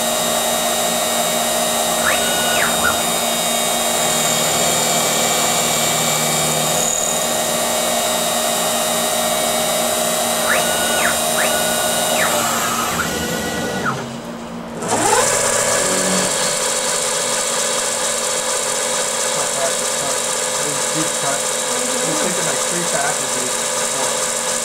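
A milling machine motor whirs steadily.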